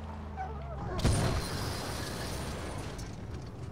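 An explosion bursts with a loud crackle of fire.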